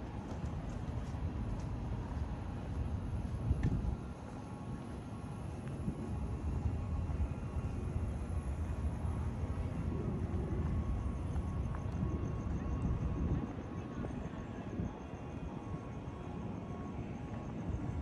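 A generator hums steadily nearby.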